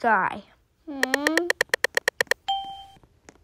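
A rapid run of electronic ticks plays as a game announces a role.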